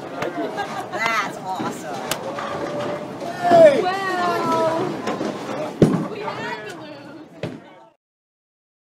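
A crowd of people talk and cheer excitedly nearby.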